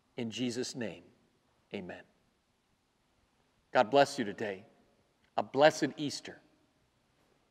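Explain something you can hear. A middle-aged man speaks earnestly into a clip-on microphone, in short phrases with pauses.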